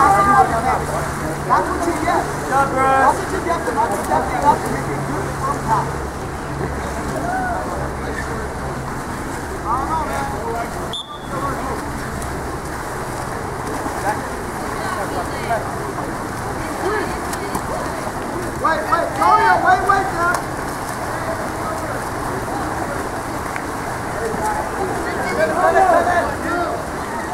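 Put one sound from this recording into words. Young players shout to one another from a distance outdoors.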